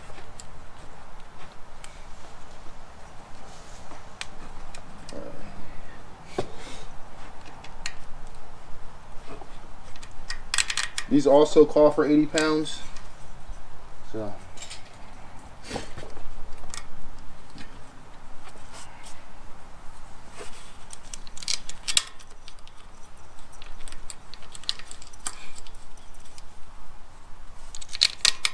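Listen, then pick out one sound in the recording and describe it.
Small metal parts click and clink as hands work on an engine.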